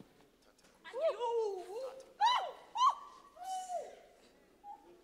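A woman screams and wails loudly nearby.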